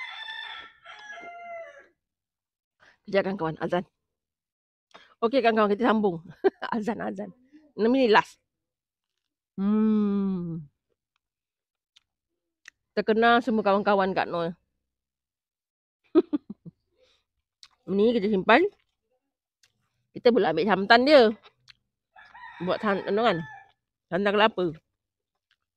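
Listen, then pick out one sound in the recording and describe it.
A woman talks with animation close to a clip-on microphone.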